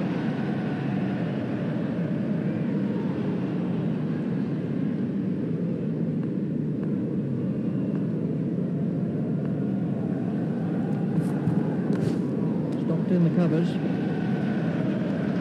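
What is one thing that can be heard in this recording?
A stadium crowd murmurs and cheers steadily.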